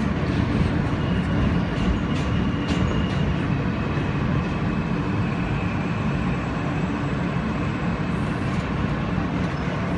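Train brakes squeal faintly as the train slows.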